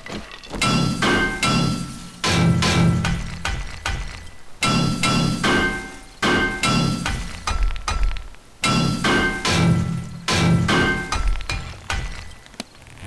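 A heavy wooden hatch creaks and bangs open and shut several times.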